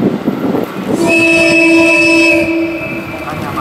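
A train horn sounds a long blast.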